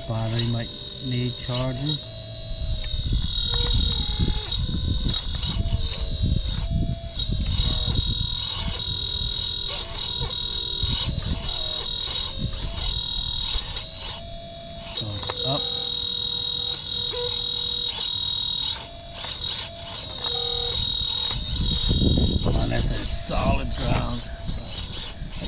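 A toy excavator's bucket scrapes and digs into dirt and leaves.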